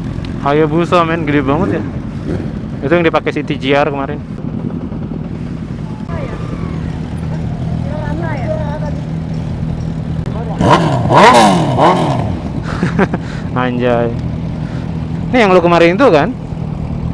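Motorcycle engines idle with a steady low rumble close by.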